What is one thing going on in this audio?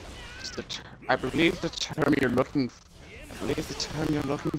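Fiery blasts roar loudly.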